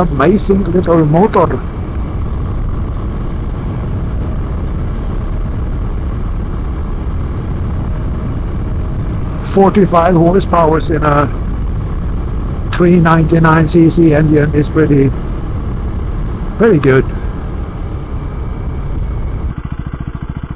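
A motorcycle engine rumbles steadily while riding.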